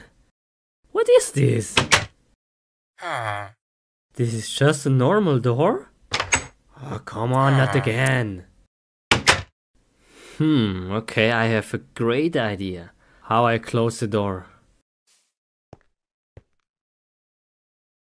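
A wooden door clicks open and shut several times.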